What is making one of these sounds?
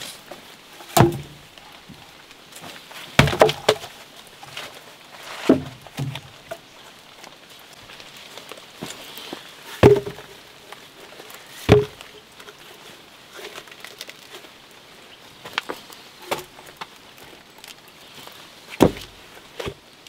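Wooden planks knock and thud as they are laid down on the ground.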